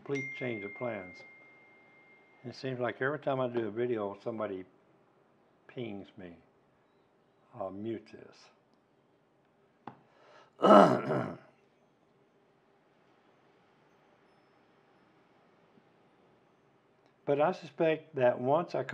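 An elderly man talks calmly and close up, with pauses.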